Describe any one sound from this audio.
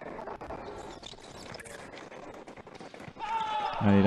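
Fencing blades clash and click.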